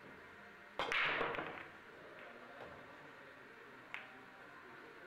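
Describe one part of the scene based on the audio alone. Billiard balls clack against each other and the cushions as they scatter.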